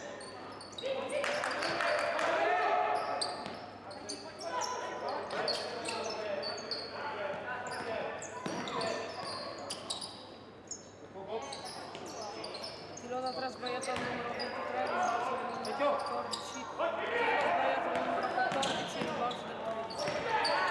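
Players shout to each other across the court.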